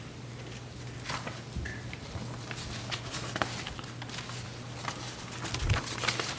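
Papers rustle and shuffle on a table.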